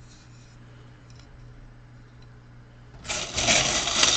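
Paper cards rustle and slide as hands move them.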